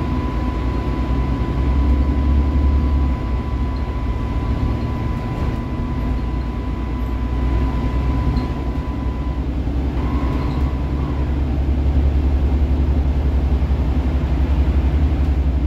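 Tyres hiss on a wet road beneath a bus.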